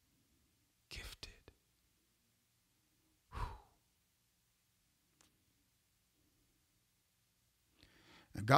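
A man speaks briefly and calmly into a close microphone.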